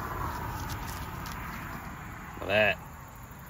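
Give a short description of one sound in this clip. Corn husks rustle and tear as a man peels them.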